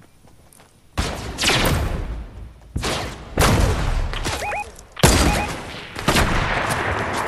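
Sniper rifle shots crack loudly and echo.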